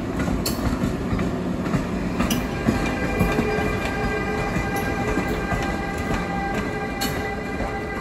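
Steel wheels clack over rail joints.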